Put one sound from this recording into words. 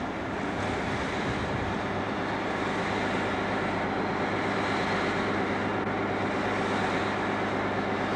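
A second diesel locomotive engine drones as it rolls in and approaches.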